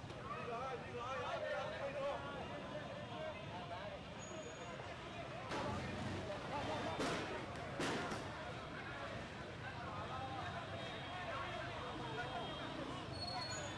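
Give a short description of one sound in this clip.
Motorbike engines idle and putter nearby.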